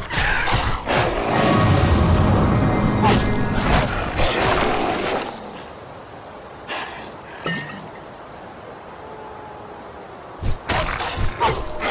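A wolf snarls and yelps as it is struck.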